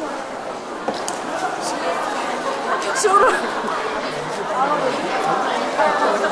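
An audience of men and women murmurs and chatters in a large hall.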